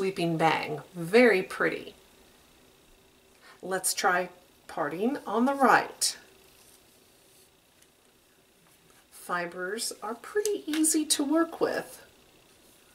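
A woman speaks calmly and closely into a microphone, in short bursts.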